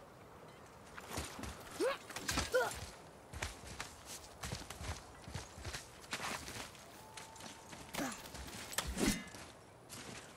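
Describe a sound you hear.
Hands and feet scrape and rustle on climbing vines.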